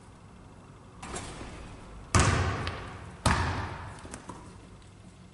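A basketball bounces on a wooden floor, booming in a large echoing hall.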